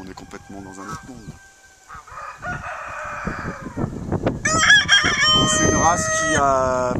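Chickens cluck close by.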